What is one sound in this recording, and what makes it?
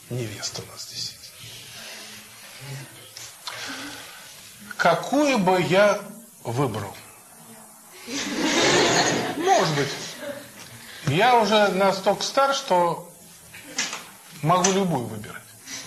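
An elderly man speaks calmly and warmly, close by.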